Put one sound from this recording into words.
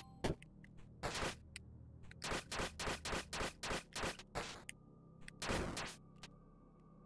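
Sharp retro video game sound effects of whip strikes and hits crack in quick bursts.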